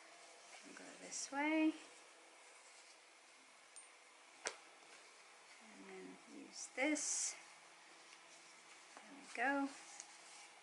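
A thin scarf rustles as it is folded by hand.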